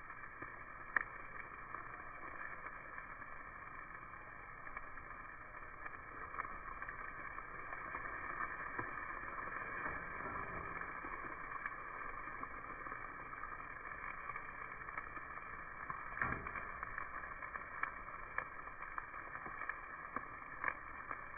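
Metal tongs click against a grill grate.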